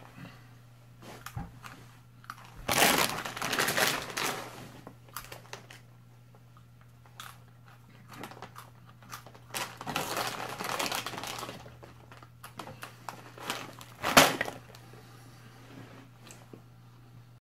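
A man crunches on chips.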